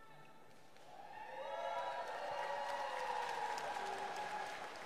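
A woman sings slowly and steadily over a loudspeaker in a large echoing hall.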